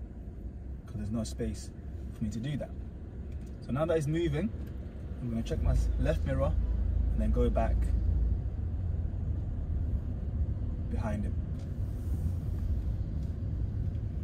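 A car engine hums low and steady inside the car.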